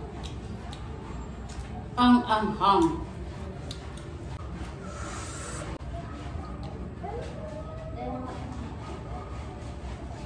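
A young woman crunches on crisp fruit while chewing.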